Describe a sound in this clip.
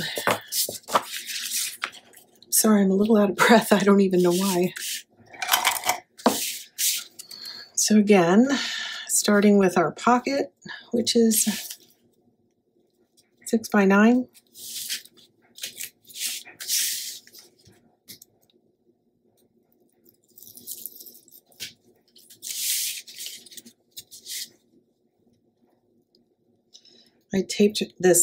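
Sheets of paper slide and rustle on a table.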